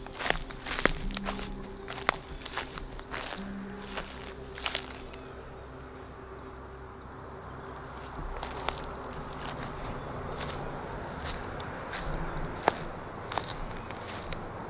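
Footsteps crunch on dry grass and leaves.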